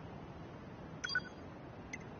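A menu blip sounds once.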